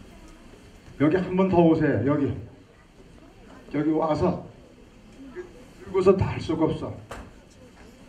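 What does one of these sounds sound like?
A man speaks loudly through a loudspeaker in a large hall.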